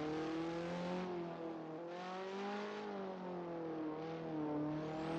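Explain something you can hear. A race car engine fades into the distance.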